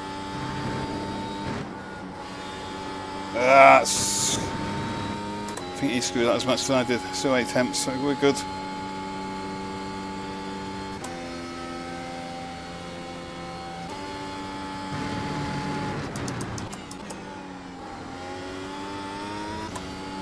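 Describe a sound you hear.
A racing car engine drones steadily, its pitch shifting as gears change.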